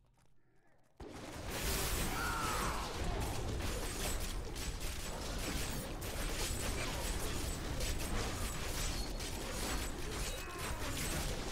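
Spells, blows and explosions clash loudly in a fast battle.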